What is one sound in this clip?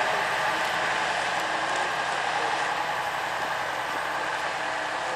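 A vintage diesel bus towing a passenger trailer drives along a road in the distance.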